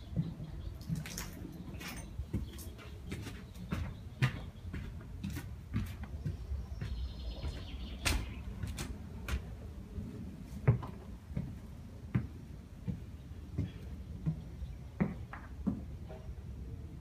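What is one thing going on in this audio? Footsteps thump and creak on wooden stairs and floorboards.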